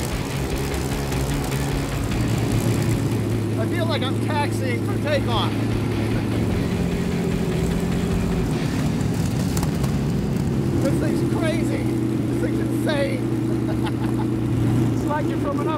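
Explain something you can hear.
An old car engine rumbles steadily as the car drives along.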